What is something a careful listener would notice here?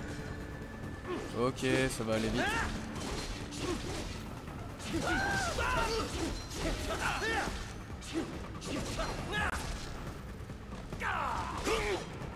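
Swords clash and slice with sharp metallic swishes.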